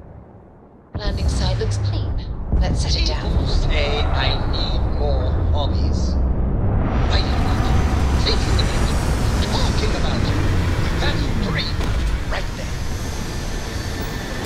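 A spacecraft's engines rumble with a deep, steady roar.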